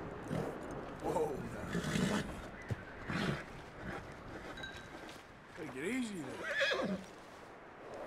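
A horse snorts and nickers close by.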